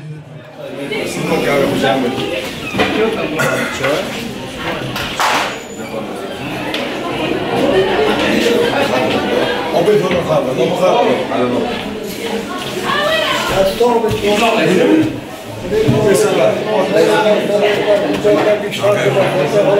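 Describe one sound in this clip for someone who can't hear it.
A crowd of men and women chatter loudly.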